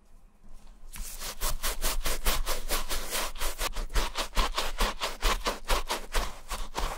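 A stiff brush scrubs rapidly against a shoe.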